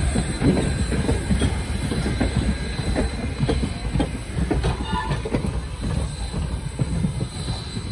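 A steam locomotive chuffs heavily as it passes.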